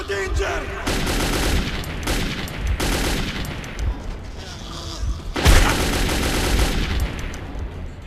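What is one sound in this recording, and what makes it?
A rifle fires loud bursts of shots that echo.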